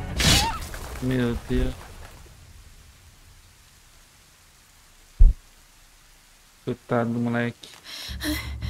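A man speaks close to a microphone in short bursts.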